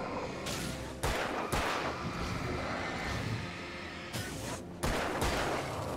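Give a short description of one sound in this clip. Gunshots bang sharply with a short ring.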